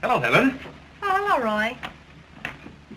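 A woman greets a man.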